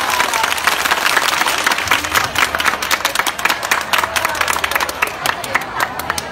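A large crowd claps along in a rapid, steady rhythm outdoors.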